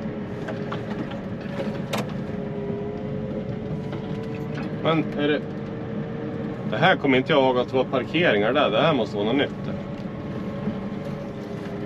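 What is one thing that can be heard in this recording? A plough blade scrapes and pushes snow along the ground.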